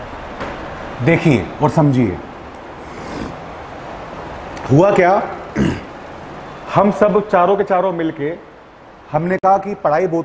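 A man speaks clearly into a microphone, explaining at a steady teaching pace.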